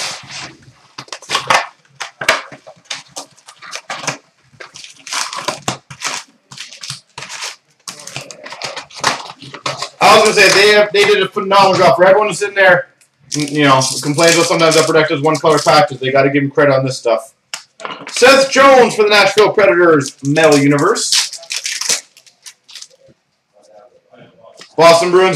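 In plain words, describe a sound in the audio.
Foil card wrappers crinkle and tear.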